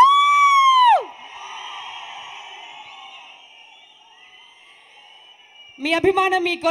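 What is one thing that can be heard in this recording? A large crowd cheers and fades down.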